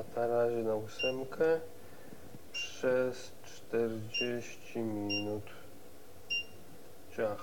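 An induction hob's touch controls beep.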